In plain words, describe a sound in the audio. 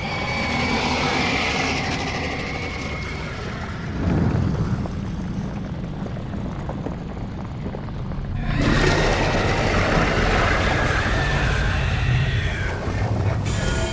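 A huge stone body crumbles and shatters into pieces.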